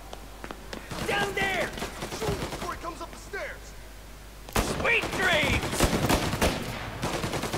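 A man speaks tersely, close by.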